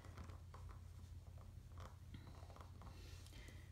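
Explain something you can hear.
A stamp block presses and rubs softly on paper.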